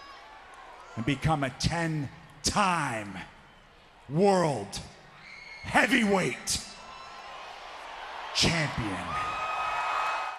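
A man shouts forcefully into a microphone, his voice echoing through a large arena.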